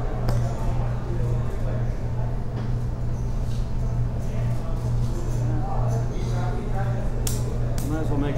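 Poker chips click together.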